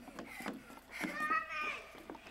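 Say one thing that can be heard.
A young child talks loudly close by.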